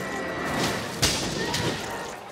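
An explosive burst booms.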